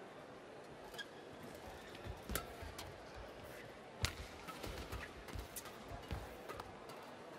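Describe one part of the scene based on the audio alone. Rackets strike a shuttlecock back and forth in sharp, quick hits.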